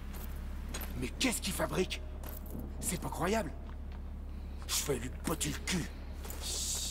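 A man speaks with alarm.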